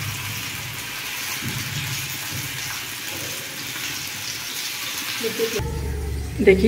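Oil sizzles steadily as food fries in a pan.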